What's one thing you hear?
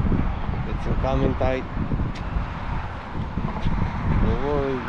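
A man speaks close by, his voice a little muffled.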